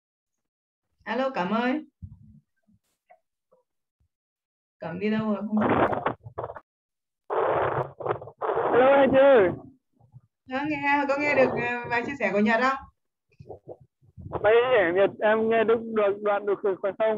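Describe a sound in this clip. A woman speaks over an online call, with pauses.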